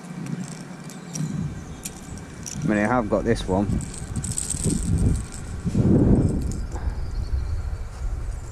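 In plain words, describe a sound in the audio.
Plastic fishing lures rattle and click as hands sort through them.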